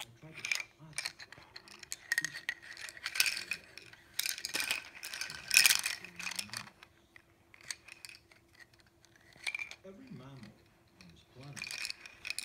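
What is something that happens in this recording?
A plastic toy rattles and clicks in a baby's hands.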